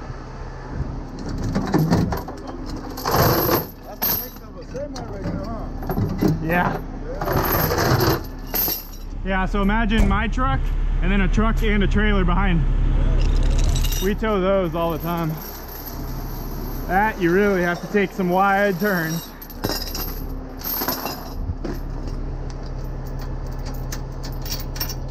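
Metal chains clink and rattle.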